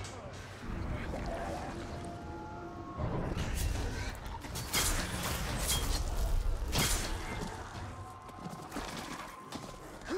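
Blades slash and clang in a fight.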